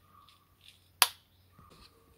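A wall switch clicks.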